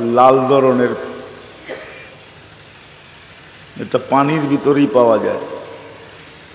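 An elderly man speaks slowly and emphatically into a microphone, with a slight echo.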